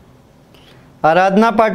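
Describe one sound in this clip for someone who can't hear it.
A young man speaks loudly and clearly into a close microphone.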